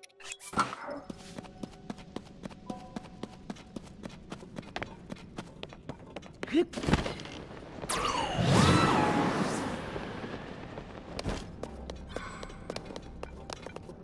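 Quick footsteps patter over grass and earth.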